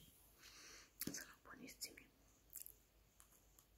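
A young woman bites into a crunchy snack close up.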